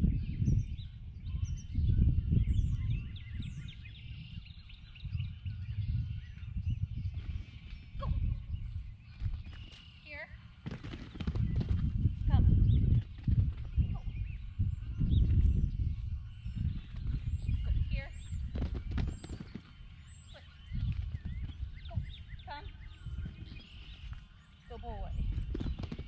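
Wind blows and rumbles against the microphone outdoors.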